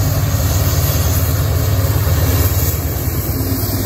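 Train wheels roll and clatter over the rails.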